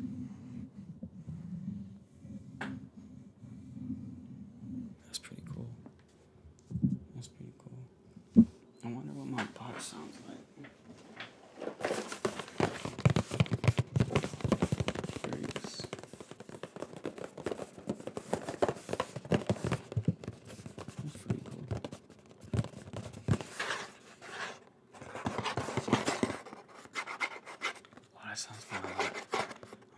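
A young man speaks softly and closely into a microphone.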